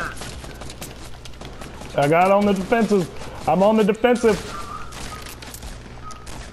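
Rapid gunshots fire in a video game.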